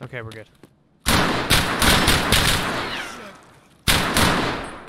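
Gunshots fire in rapid bursts and echo loudly.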